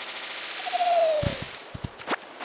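Fruit drops to the ground with soft thuds.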